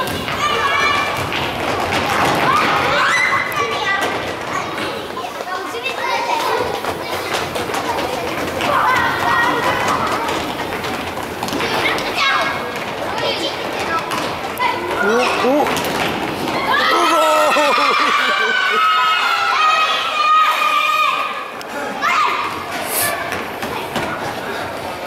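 Children's shoes squeak and patter on a wooden floor.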